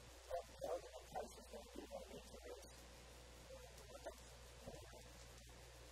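A man speaks with animation through a clip-on microphone.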